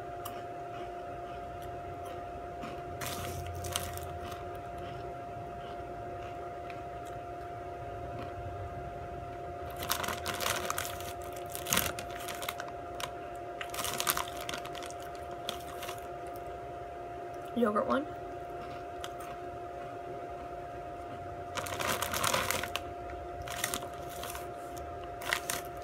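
A young woman crunches on chips close to the microphone.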